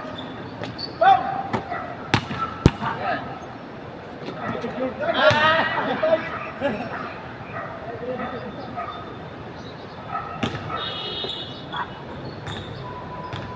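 Sneakers squeak on a court.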